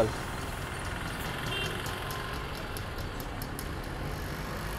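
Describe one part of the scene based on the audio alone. A screwdriver clicks and scrapes against metal.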